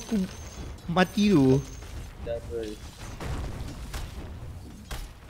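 Spells and weapon blows crackle and thud in a fantasy game battle.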